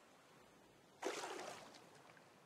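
Water splashes as a swimmer dives under.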